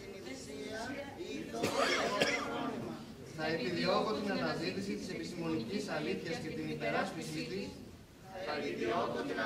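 A large mixed choir sings together in a big echoing hall.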